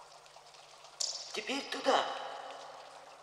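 A man calls out from a distance, his voice echoing in a large tunnel.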